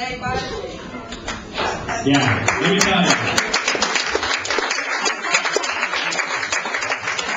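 A crowd of men and women talk and call out in an echoing room.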